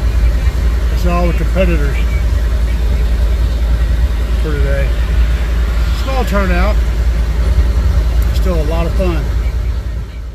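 A man calls out loudly in short bursts from nearby.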